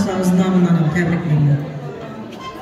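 A woman sings loudly close by.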